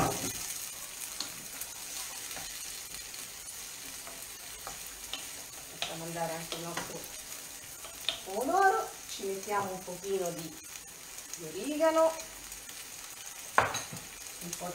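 A utensil clinks against a pan.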